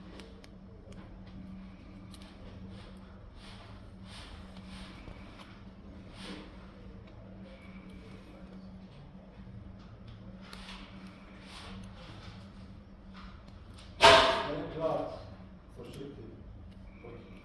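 Fingers handle thin wires with soft rustling and faint plastic clicks.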